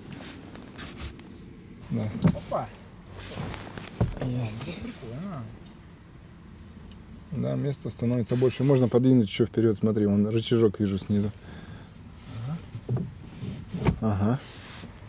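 A car seat back thumps as it folds down.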